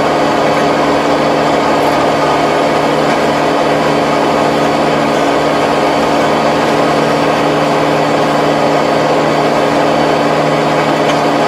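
A rotary tiller churns through soil with a loud rattling roar.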